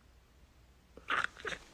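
A young woman lets out a short, loud vocal sound close by.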